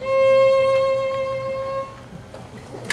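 A violin plays a steady held note.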